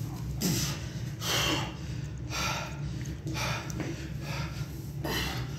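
A man breathes out hard in rhythmic bursts.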